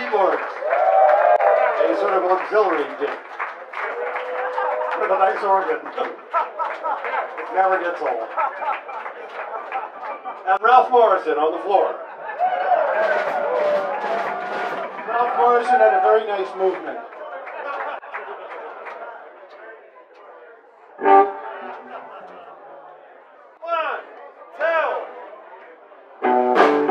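An electric guitar strums chords.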